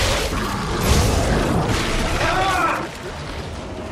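A monster shrieks and wails.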